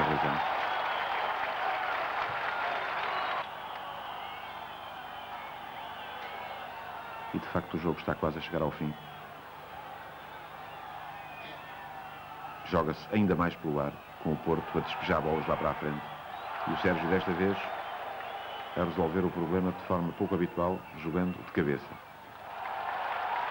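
A large stadium crowd roars and murmurs outdoors.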